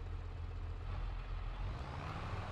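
A tractor engine revs up as it pulls away.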